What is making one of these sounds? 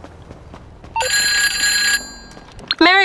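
A mobile phone rings with a short electronic tone.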